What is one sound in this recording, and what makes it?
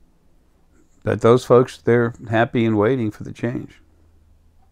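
An older man speaks calmly and close up through a clip-on microphone.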